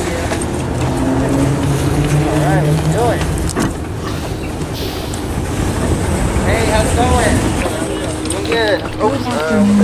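A bus engine idles nearby with a steady low rumble.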